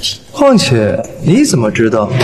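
A young woman speaks with surprise.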